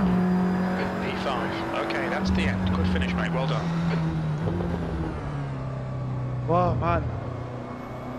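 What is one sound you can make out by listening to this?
Tyres squeal as a racing car brakes into a corner.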